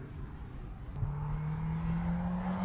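A twin-turbo V8 SUV approaches.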